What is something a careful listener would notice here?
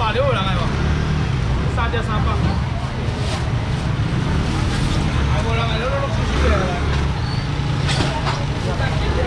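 Plastic bags rustle.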